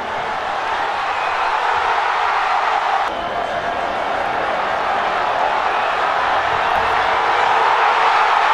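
A large stadium crowd roars steadily, swelling toward the end.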